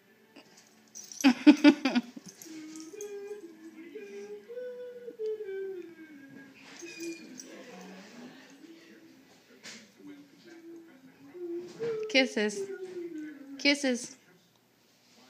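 A cat yowls with long, rising and falling cries.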